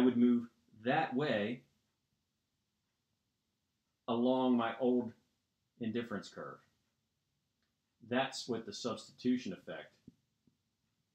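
A middle-aged man speaks calmly and clearly into a close microphone, in short phrases with pauses.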